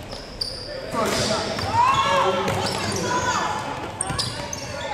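Young people on the court and in the stands shout and call out, echoing in a large hall.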